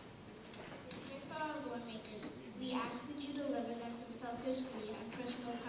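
A young girl reads aloud into a microphone over loudspeakers.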